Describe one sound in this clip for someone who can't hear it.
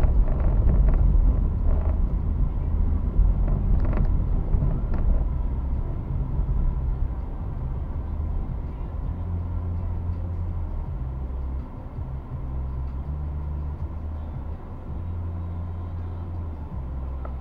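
A car engine rumbles low from inside the car, growing quieter as the car slows to a stop.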